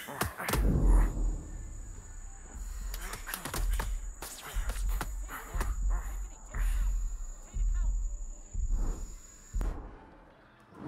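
Boxing punches thud against a body.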